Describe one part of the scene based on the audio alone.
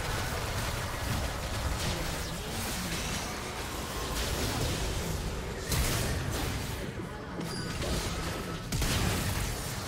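Magic blasts and hits crackle and thump in a busy battle.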